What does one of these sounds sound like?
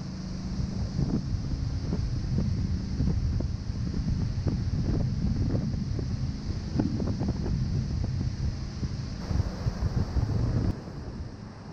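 Water rushes and splashes against a moving boat's hull.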